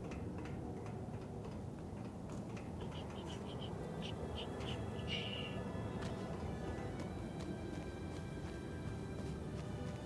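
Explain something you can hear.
Footsteps patter on the ground as a figure runs.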